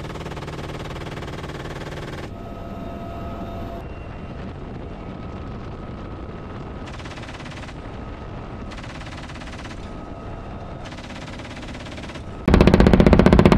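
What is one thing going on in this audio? A helicopter engine and rotor roar steadily from inside the cabin.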